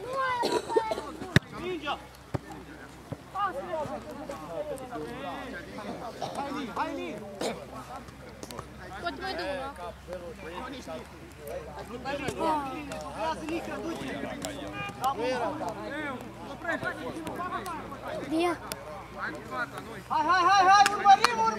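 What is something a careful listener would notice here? Young men talk casually close by outdoors.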